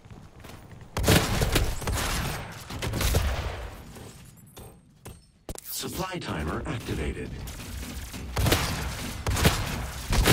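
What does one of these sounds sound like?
Shotgun blasts boom loudly.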